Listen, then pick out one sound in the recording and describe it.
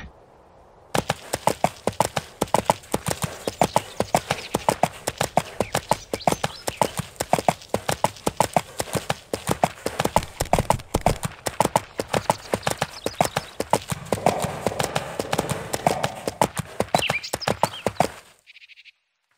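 A horse's hooves clop quickly and steadily at a gallop.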